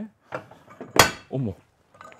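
A sharp knock sounds as equipment is set down.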